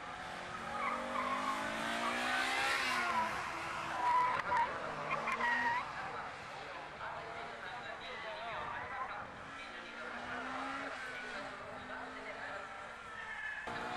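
A car engine revs hard, rising and falling in pitch as the car accelerates through the gears.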